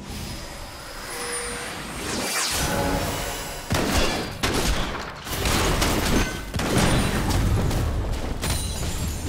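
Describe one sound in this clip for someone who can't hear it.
Spell effects whoosh and crackle in a fantasy battle.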